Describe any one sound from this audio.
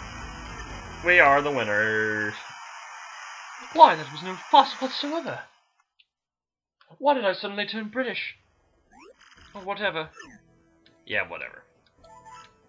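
Cartoonish game characters babble in short, chirpy bursts of gibberish.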